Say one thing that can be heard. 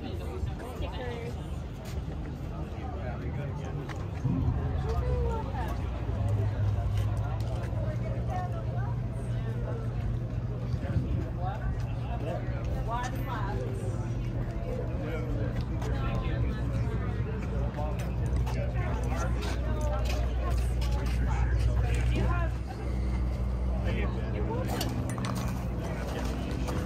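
Men and women chat in the background outdoors.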